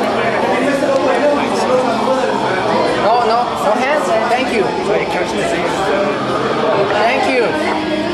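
Several young men and women talk and chatter loudly close by.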